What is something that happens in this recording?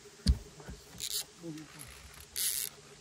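A fishing reel whirs in short bursts.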